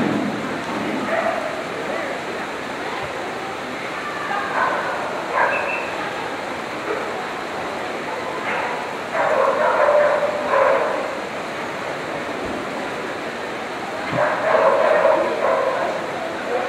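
A woman calls out commands to a dog in a large echoing hall.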